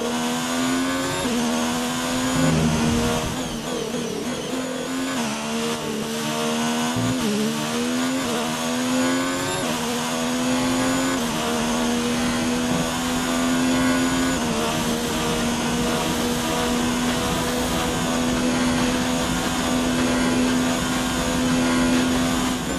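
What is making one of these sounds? A racing car engine screams at high revs, shifting gears up and down.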